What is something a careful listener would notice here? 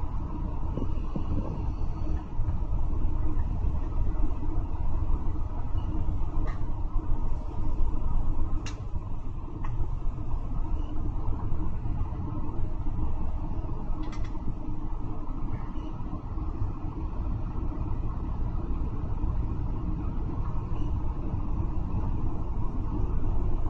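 Road noise hums from tyres on the road outside.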